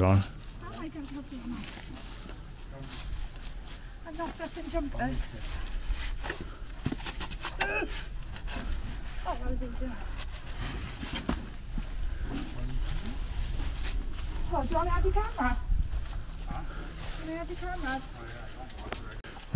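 Several people talk quietly at a distance outdoors.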